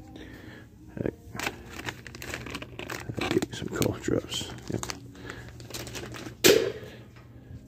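A plastic package crinkles in a hand.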